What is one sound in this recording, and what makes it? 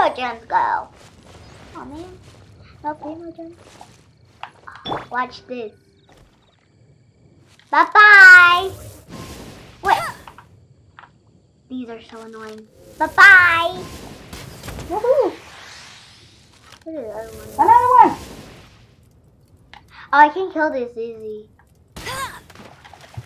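A young girl talks with excitement close to a microphone.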